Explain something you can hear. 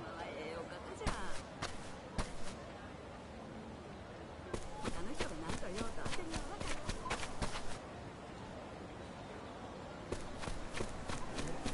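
Footsteps crunch on gravel at a steady pace.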